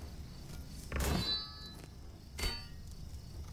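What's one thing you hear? A wooden staff strikes a hard floor with sharp knocks.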